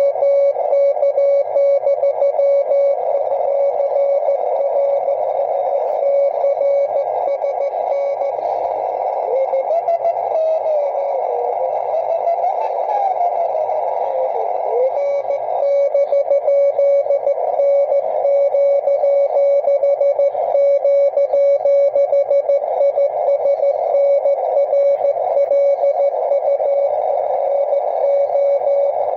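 Static hisses and crackles from a radio receiver.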